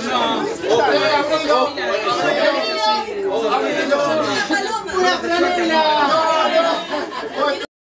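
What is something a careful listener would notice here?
A group of young men and women sing together nearby.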